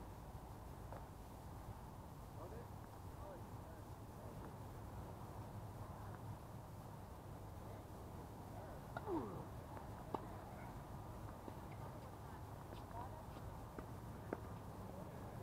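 A tennis ball is hit with a faint, distant pop now and then.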